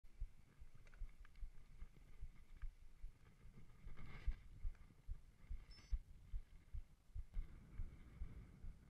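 Bicycle tyres roll and bump over a dirt trail.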